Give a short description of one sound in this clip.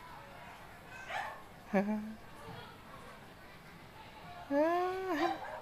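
A cat meows loudly several times.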